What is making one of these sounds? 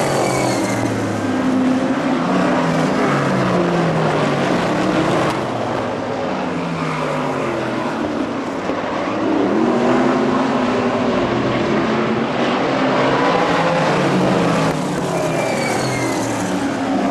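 Race car engines roar loudly around a track, revving and droning past.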